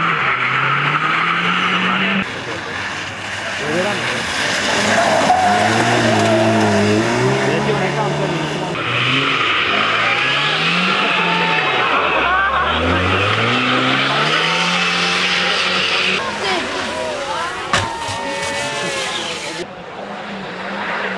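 A rally car engine roars and revs hard as it races past.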